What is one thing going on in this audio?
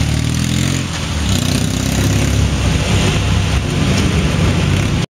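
A motorcycle engine roars loudly, then rumbles as it moves away.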